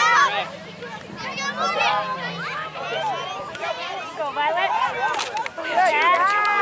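Adults and children shout and cheer outdoors.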